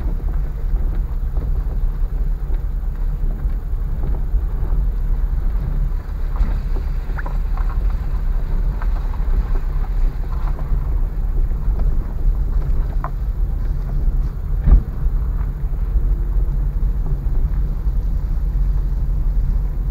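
Tyres crunch and bump over a rough dirt road, with sharp knocks now and then.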